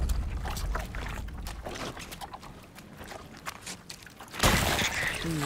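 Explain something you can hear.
Boots splash through shallow water and mud.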